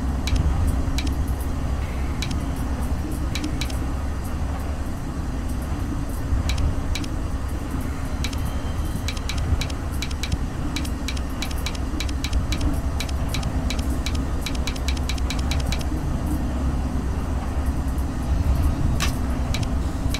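A metal dial clicks repeatedly as it turns.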